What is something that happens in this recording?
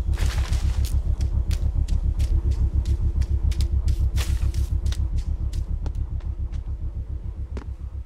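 Footsteps run quickly over grass and earth.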